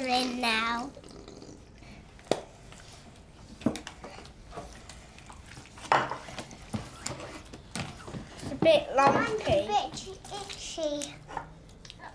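A young child talks in a high voice nearby.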